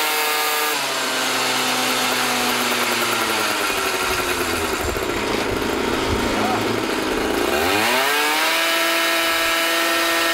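A scooter engine revs loudly, its pitch falling and then climbing high again.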